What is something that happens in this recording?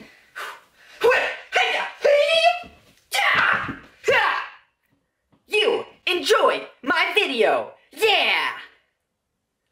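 A young man talks loudly and with animation close to the microphone.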